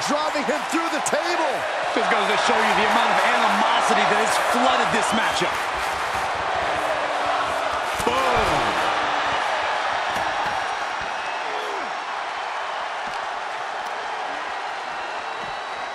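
A large crowd cheers and roars in a big echoing arena, growing quieter toward the end.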